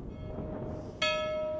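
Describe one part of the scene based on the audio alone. A church bell rings out loudly.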